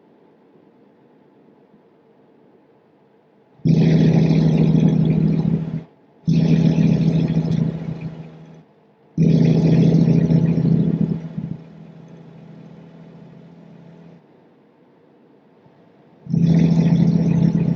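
A truck engine hums steadily.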